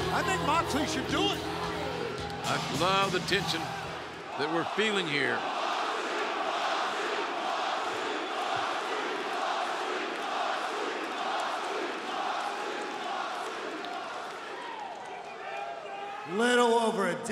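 A large crowd cheers and chants in a big echoing arena.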